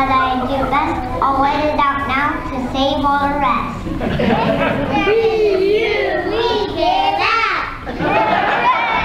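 Children sing together on a stage, heard from the audience in a large hall.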